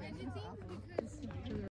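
A tennis ball is hit with a racket at a distance.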